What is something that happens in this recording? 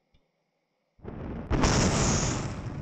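A sharp bang sounds as a rocket stage breaks away.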